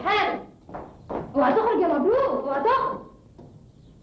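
A woman speaks loudly and with emotion, close by.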